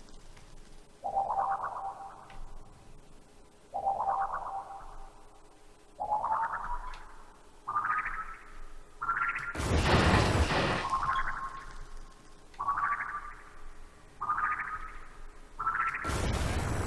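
Laser beams fire in repeated short humming bursts, each rising slightly in pitch.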